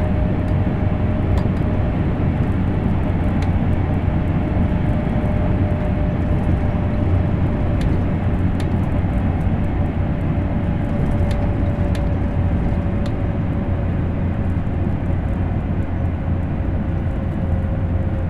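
An electric train motor hums with a steady, slowly falling whine.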